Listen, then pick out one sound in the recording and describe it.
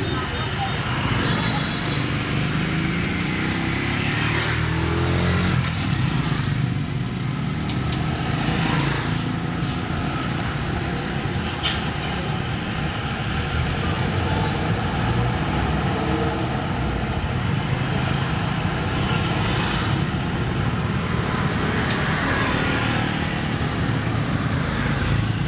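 A pedal rickshaw rolls along an asphalt street.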